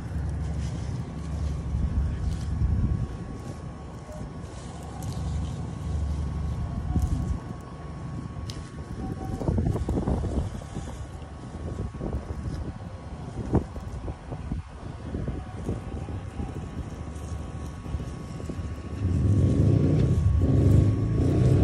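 Gloved hands rustle through dense leaves and stems.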